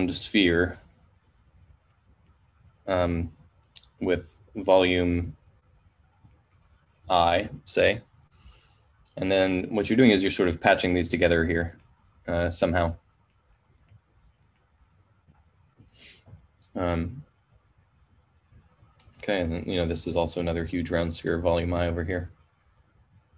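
A man speaks calmly in bursts, close to a microphone, as if on an online call.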